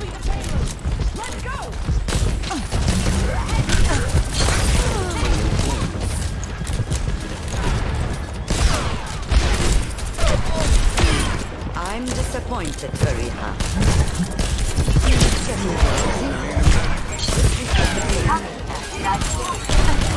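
Game sound effects whoosh and beep.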